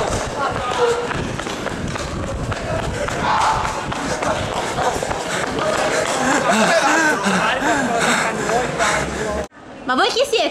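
A crowd chatters outdoors in the street.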